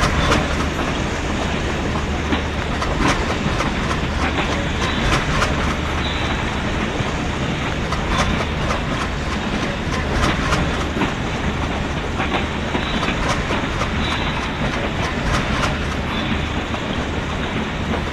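Train wheels rumble and clatter steadily over the rails.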